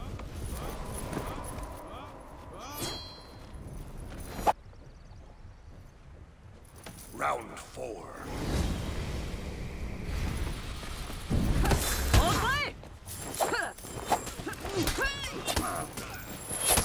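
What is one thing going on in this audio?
Swords clash and ring out in a fight.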